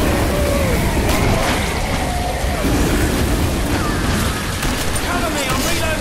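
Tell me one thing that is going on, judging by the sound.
A flamethrower roars as it sprays fire.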